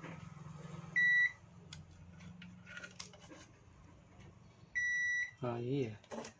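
A multimeter gives short, steady beeps.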